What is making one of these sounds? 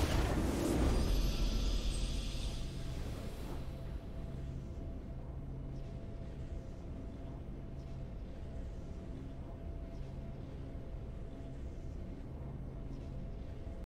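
A deep fanfare swells and then rings out steadily.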